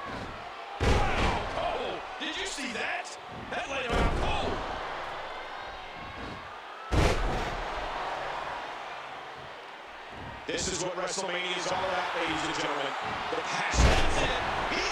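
Heavy bodies slam onto a wrestling ring mat with loud thuds.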